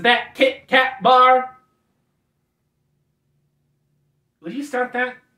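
A man speaks calmly and close by, pausing between phrases.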